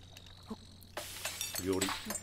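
Food sizzles and bubbles in a cooking pot.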